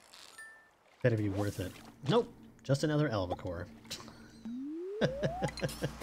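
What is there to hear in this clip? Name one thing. A short musical jingle plays as a fish is caught.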